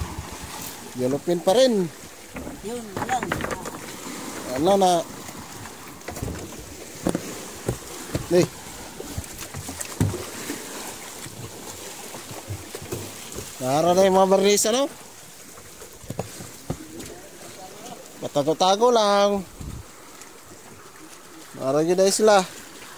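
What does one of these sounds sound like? A man calls out loudly nearby, outdoors on open water.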